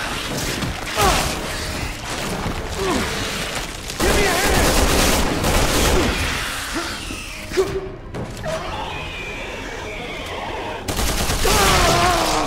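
Creatures screech and growl.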